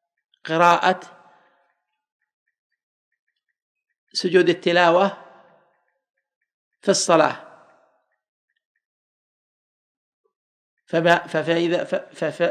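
A man speaks slowly and solemnly into a microphone, in short phrases with long pauses.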